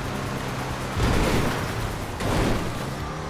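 A car bumps hard over rough ground.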